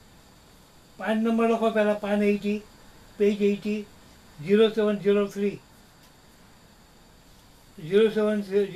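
An elderly man speaks calmly, close by, in short bursts.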